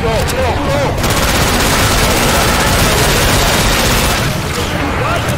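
A gun fires in rapid bursts.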